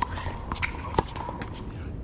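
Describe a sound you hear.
A tennis ball is struck with a racket with a sharp pop.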